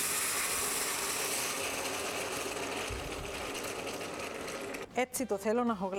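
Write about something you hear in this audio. Water pours into a pot with a steady rushing splash.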